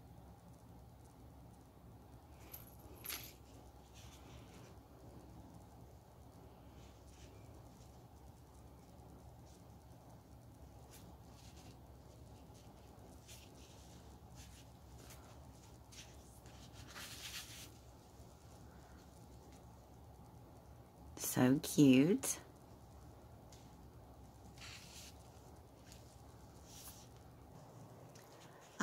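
Fabric and ribbon rustle softly as hands tie a bow.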